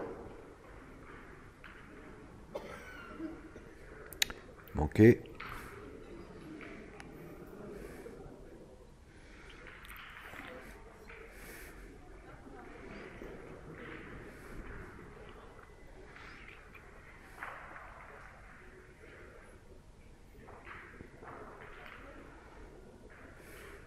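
A crowd murmurs and chats in a large echoing hall.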